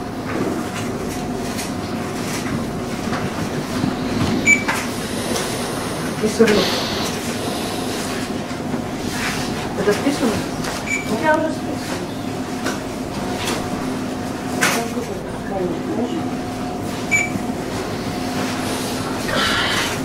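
A middle-aged woman speaks sharply nearby.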